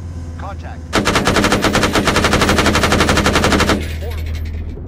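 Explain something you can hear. A heavy machine gun fires a long rapid burst.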